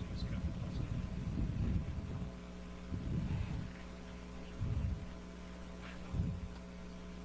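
An aircraft engine drones steadily far overhead.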